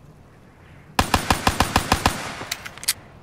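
A rapid burst of gunfire rattles out.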